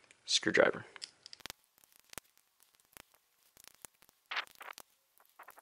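A small plastic pry tool clicks and scrapes against a phone's casing.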